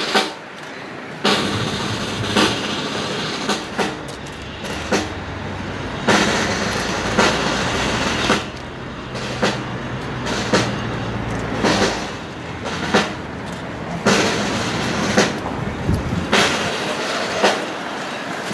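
Wind blows outdoors in loud, buffeting gusts.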